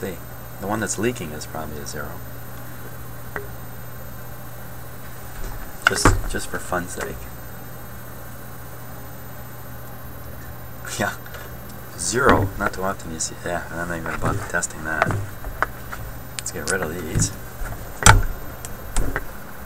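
Small plastic parts click and tap as they are handled up close.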